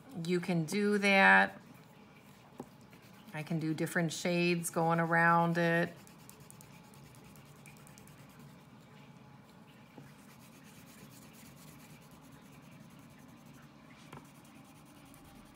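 A crayon scrapes softly across paper.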